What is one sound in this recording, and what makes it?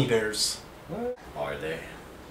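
Another young man speaks with animation.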